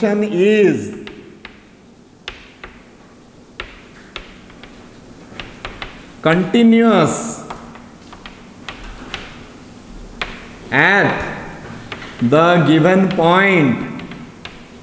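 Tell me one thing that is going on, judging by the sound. A man speaks in a lecturing voice, close by.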